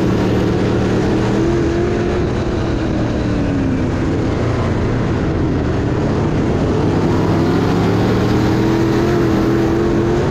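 A race car engine roars loudly up close, rising and falling in pitch.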